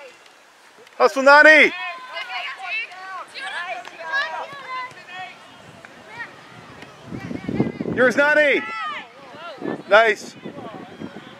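Women shout and cheer loudly close by, outdoors.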